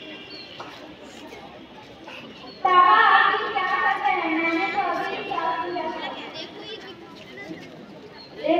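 A crowd of children chatters in the background outdoors.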